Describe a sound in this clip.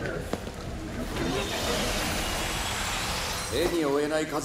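Electricity crackles and hisses.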